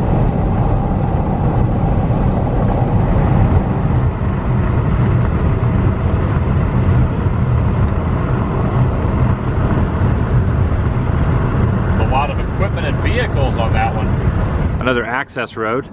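A car drives along a highway with a steady low road rumble.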